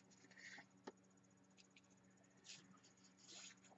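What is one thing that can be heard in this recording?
A chalk pastel scratches on paper.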